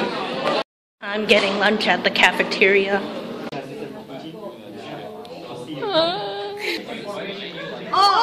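Young people talk and laugh close by.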